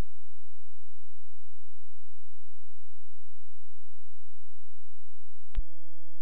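A low electronic tone hums steadily from a video game.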